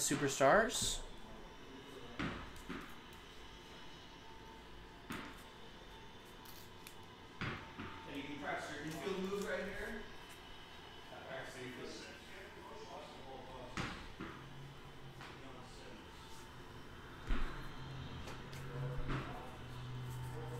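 Trading cards rustle and slide against each other in hands.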